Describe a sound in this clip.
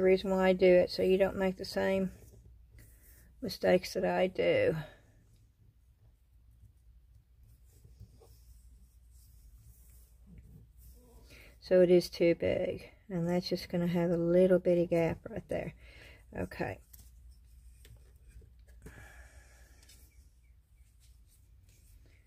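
Paper rustles softly as hands smooth and handle it.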